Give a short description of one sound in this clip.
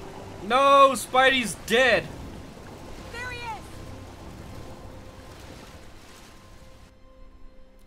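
Rain falls steadily on water.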